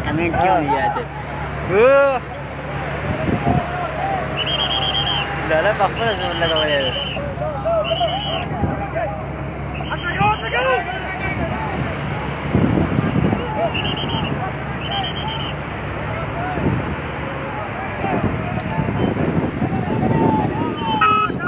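A group of men shout and chant loudly together outdoors.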